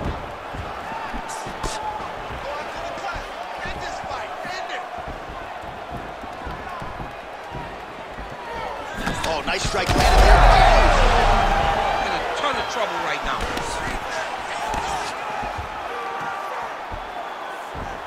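A large crowd cheers and roars in a big arena, swelling loudly midway.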